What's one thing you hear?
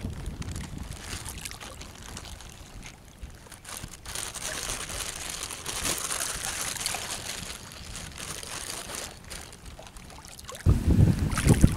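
Water splashes softly as people wade through a lake.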